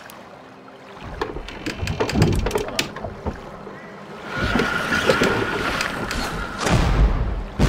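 Cannons boom and crash as warships fight.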